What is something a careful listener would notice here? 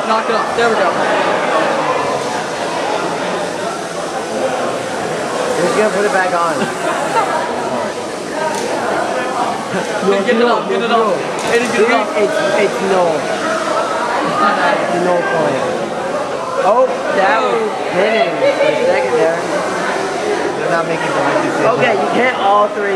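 A crowd of young people chatter loudly in a large echoing hall.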